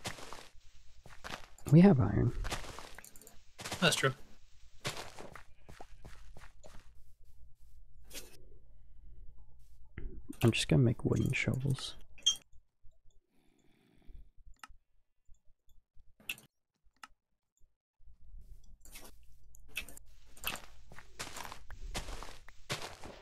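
Dirt crunches in short bursts as it is dug.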